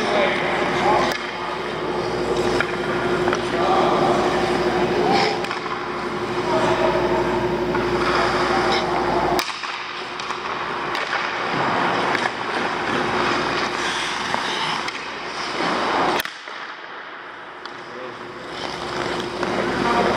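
Ice skates scrape across the ice.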